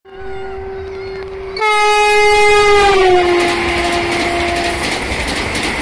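A train horn blares loudly and drops in pitch as it passes.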